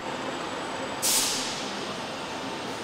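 An impact wrench whirs in a short burst.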